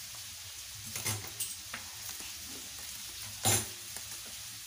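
A fish knocks against a metal plate.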